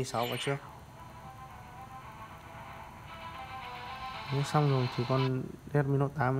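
Game music plays from a phone's speaker.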